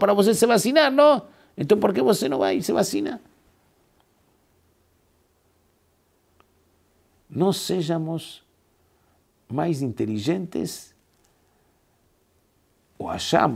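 A middle-aged man speaks with animation into a close microphone, pausing between phrases.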